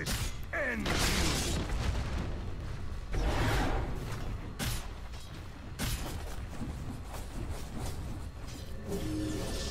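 Video game spells whoosh and crackle in bursts during a fight.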